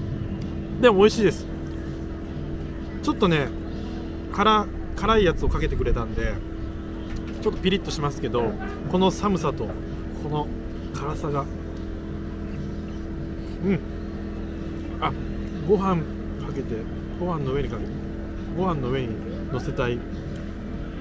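A young man talks close up, in a low, chatty voice.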